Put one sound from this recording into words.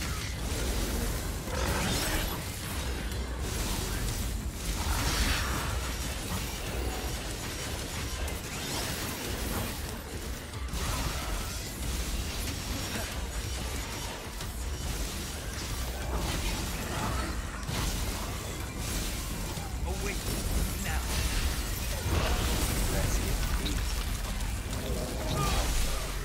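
Game sword slashes and impacts clang and whoosh rapidly.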